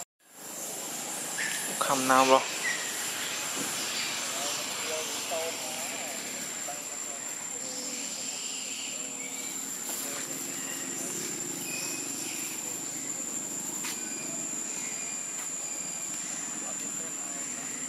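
A monkey walks over dry leaves, rustling them.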